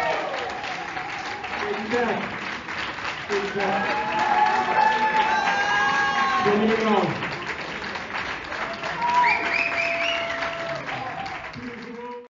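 A jazz band plays live.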